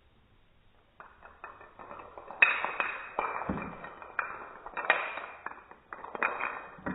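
Wooden blocks topple and clatter against each other on a wooden floor.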